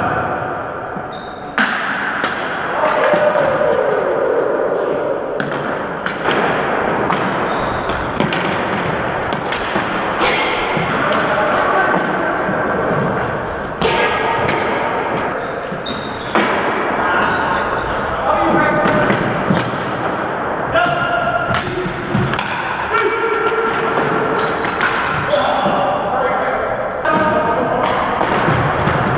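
Men shout to each other during play.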